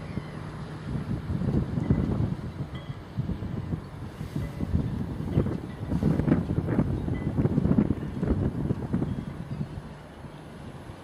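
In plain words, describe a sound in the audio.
Wind buffets outdoors in strong gusts.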